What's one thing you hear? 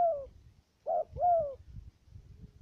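A bird calls loudly with short sharp notes close by.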